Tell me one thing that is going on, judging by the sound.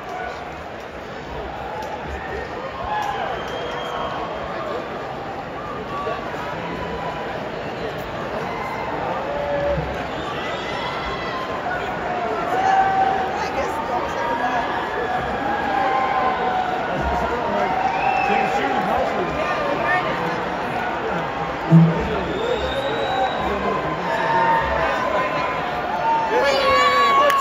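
A rock band plays live through loudspeakers.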